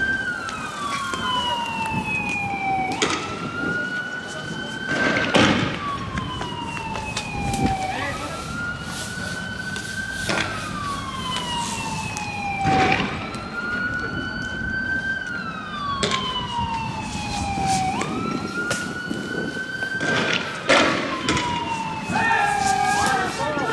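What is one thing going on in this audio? A police siren wails nearby, rising and falling over and over.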